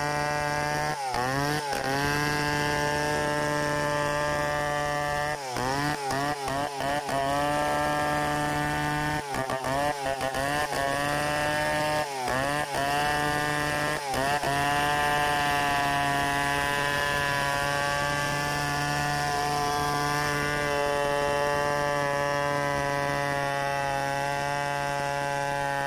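A large-displacement chainsaw rips lengthwise through a hardwood log at full throttle.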